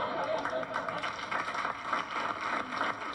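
People in an audience clap their hands.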